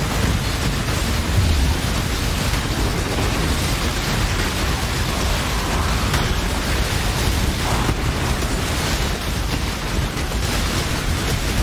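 Spell blasts and explosions crackle and boom without a break.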